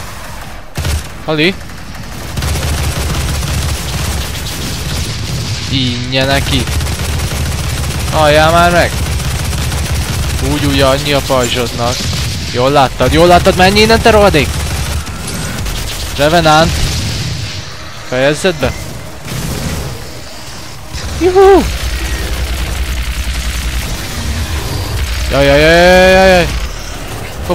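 A heavy gun fires in bursts.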